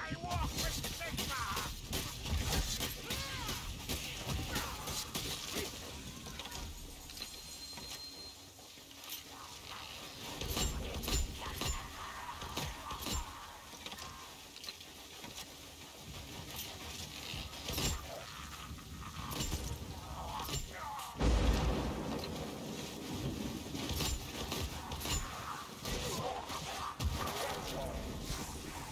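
Swords slash and clang against creatures.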